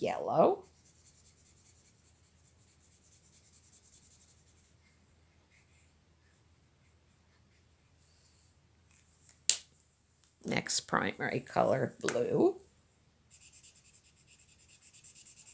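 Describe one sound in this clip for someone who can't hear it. A felt-tip marker scratches and squeaks faintly on paper.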